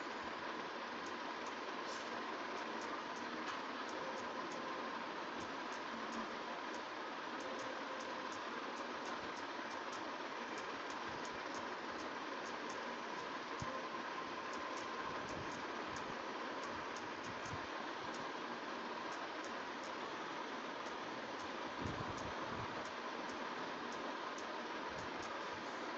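Taps of a phone keyboard click quickly and steadily.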